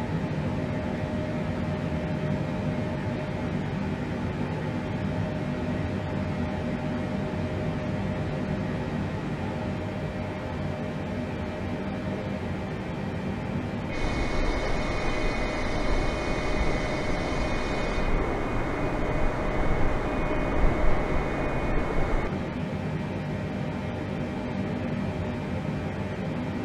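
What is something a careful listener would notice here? A steady low hum of aircraft engines drones.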